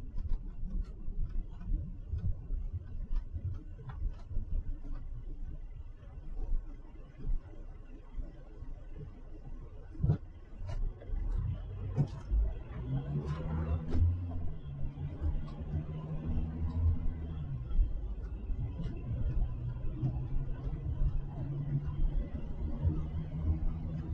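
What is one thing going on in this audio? A car drives along a wet road, its tyres rumbling and hissing steadily.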